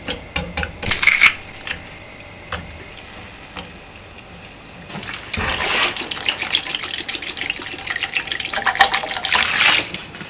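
A pot of broth simmers gently.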